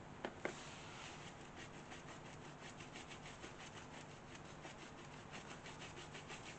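A brush scratches and dabs quickly on a rough board.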